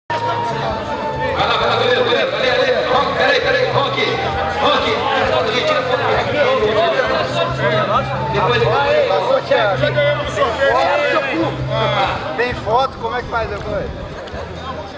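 Several men chatter and call out loudly outdoors, close by.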